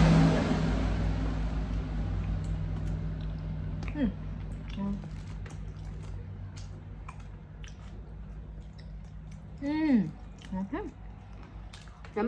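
Chopsticks tap and click against food and dishes.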